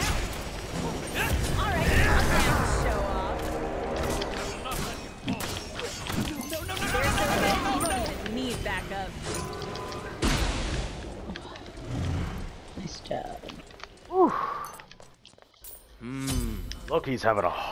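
Game sound effects of spells and blasts crash and whoosh.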